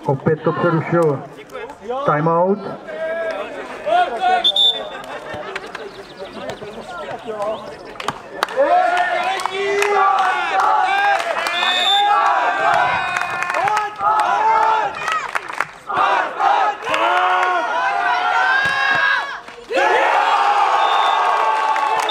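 Men on a court shout and call out to each other outdoors.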